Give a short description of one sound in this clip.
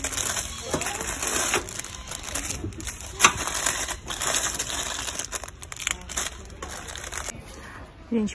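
Plastic packages crinkle and rustle as a hand rummages through them.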